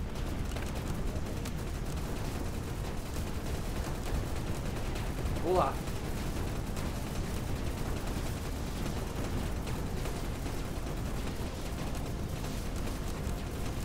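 Laser weapons fire rapidly in a space battle.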